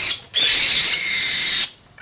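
A bird flaps its wings as it takes off.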